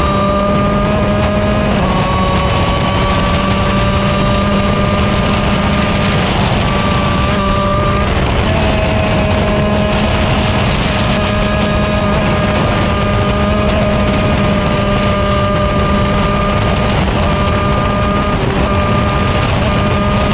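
A kart engine buzzes loudly close by, its pitch shifting as it speeds up and slows down.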